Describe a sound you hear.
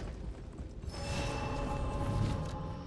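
A shimmering chime rings out and lingers.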